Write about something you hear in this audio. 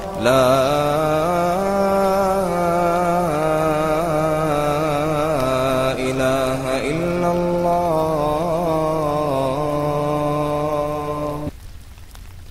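A man chants in a slow, melodic voice.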